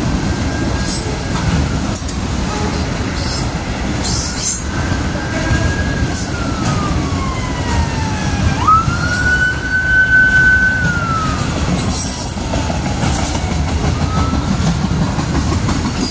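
Train wheels squeal shrilly on the rails, rising and falling in pitch.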